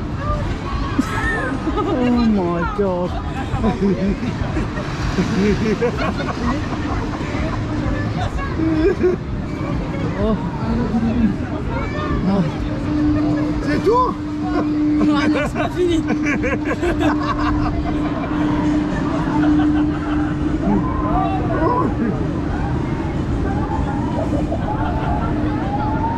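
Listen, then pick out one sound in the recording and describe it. A man shouts and laughs excitedly nearby.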